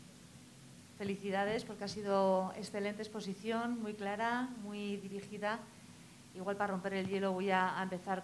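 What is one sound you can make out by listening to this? A woman speaks calmly into a microphone over loudspeakers in a large hall.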